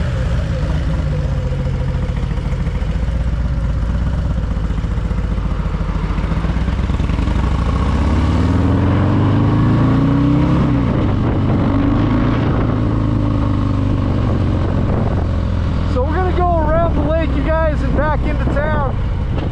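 A motorcycle engine rumbles steadily and revs as it pulls away.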